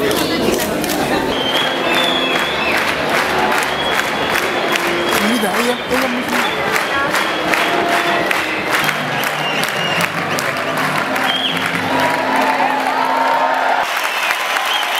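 A large audience claps and cheers.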